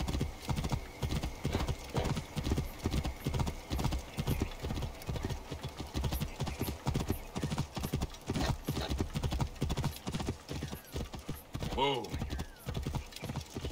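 A horse gallops with rhythmic hoof thuds.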